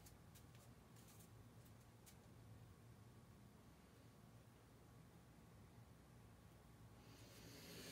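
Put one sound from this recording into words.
A metal paint can clinks as it is handled.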